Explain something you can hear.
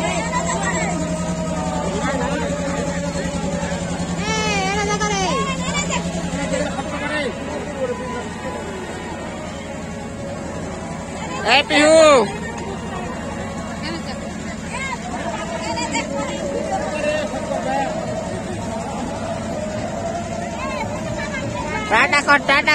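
A carousel ride hums and rattles as it turns.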